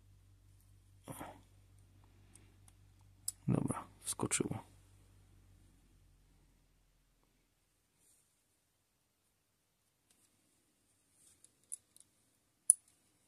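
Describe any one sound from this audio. Small plastic parts click and tap softly as fingers handle them.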